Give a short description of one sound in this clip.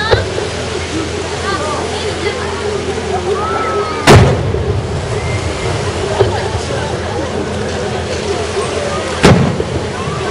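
Fireworks burst with loud booming bangs outdoors.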